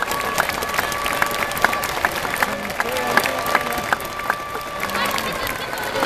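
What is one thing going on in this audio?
A large stadium crowd applauds.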